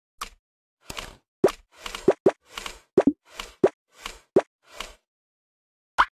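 Soft brushing swishes play quickly, one after another, mixed with short pops.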